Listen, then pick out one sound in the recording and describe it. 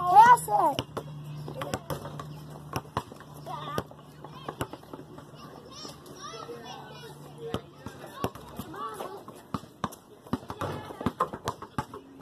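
Children talk and call out to each other outdoors.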